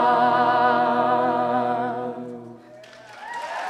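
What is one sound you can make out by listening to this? A choir sings together.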